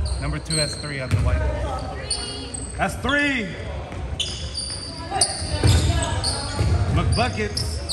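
Young men call out to each other loudly.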